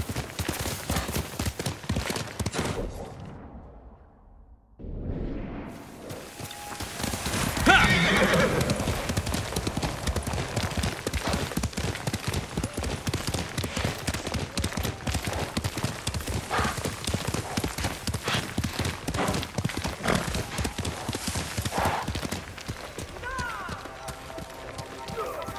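Hooves gallop quickly and steadily on a dirt path.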